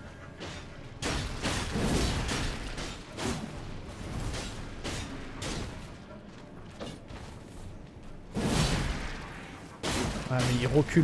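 Blades swish and clash in a fight.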